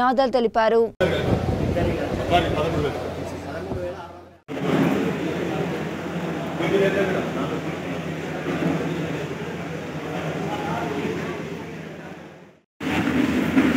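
A crowd murmurs in a large room.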